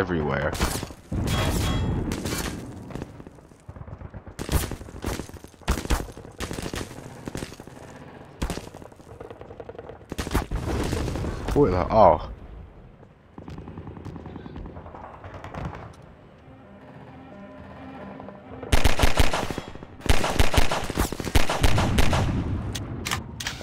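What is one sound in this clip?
Pistol shots crack out one after another.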